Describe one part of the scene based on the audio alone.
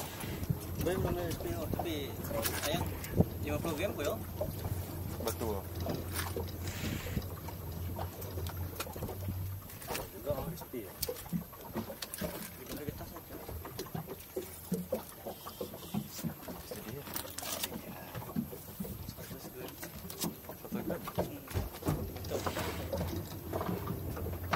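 A boat engine hums steadily outdoors on open water.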